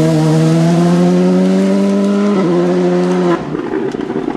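A rally car engine roars at high revs as it speeds along a dirt track.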